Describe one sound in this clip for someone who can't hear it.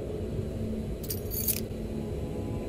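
Keys jingle briefly as they are picked up.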